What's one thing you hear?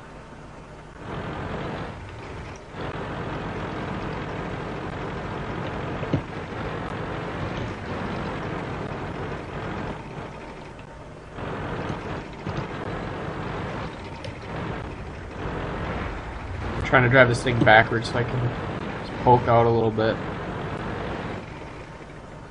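A tank engine rumbles and clanks as the tank drives along.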